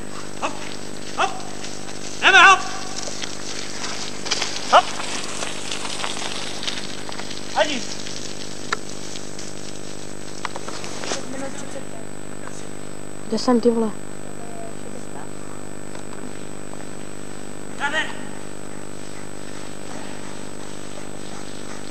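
Mountain bike tyres roll over a dirt trail covered in leaves.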